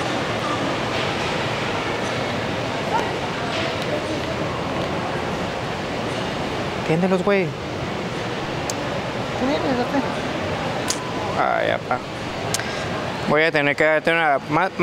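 A crowd murmurs steadily in a busy indoor space.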